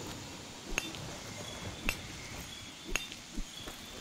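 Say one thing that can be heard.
Sharp crystal shattering cracks ring out a few times.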